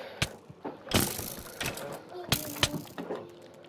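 Sharp thuds and cracks sound as a player character is struck and hurt in a game.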